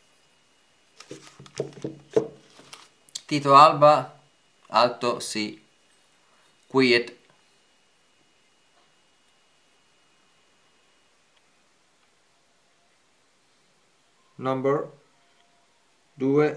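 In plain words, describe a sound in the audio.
A man speaks calmly, close by, in short bursts.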